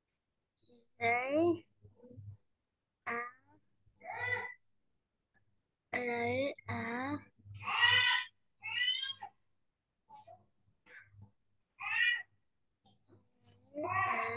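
A woman speaks words clearly and slowly over an online call.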